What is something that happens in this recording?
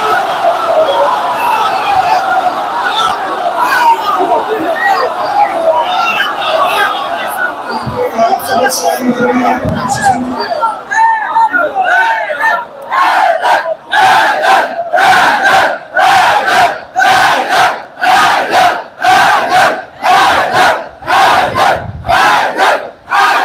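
A large crowd of men chants loudly together.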